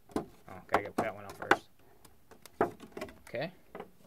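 Plastic packaging crinkles and clicks as it is handled.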